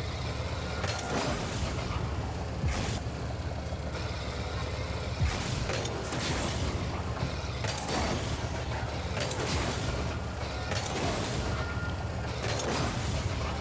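Rocket boosters whoosh loudly.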